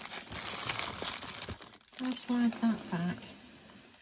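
Beads click softly against each other.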